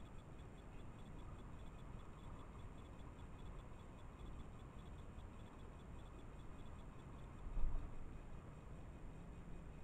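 A small bird chirps nearby.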